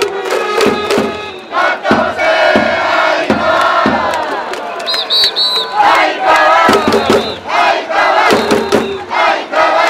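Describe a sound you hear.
A large stadium crowd chants and sings loudly in unison.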